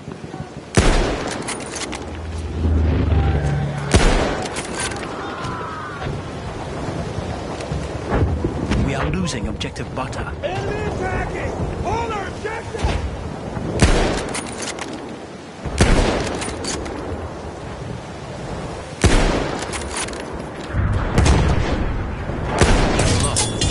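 A rifle fires sharp, loud shots that echo away.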